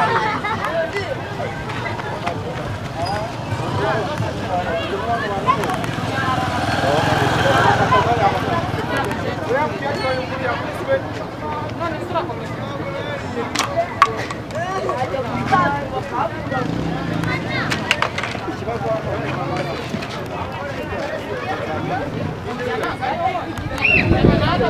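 A crowd of men, women and children chatters and calls out nearby, outdoors.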